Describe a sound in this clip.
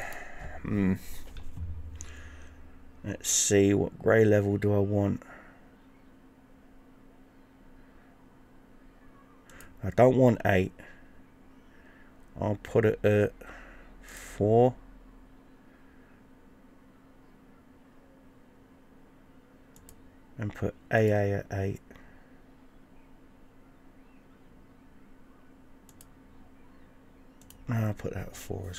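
A man talks calmly into a nearby microphone, in short bursts with long pauses.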